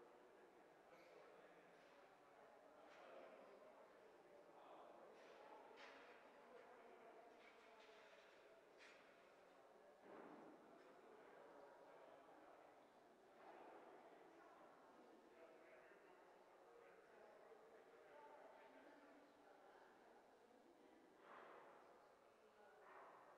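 A group of adults murmur softly together in a large echoing hall.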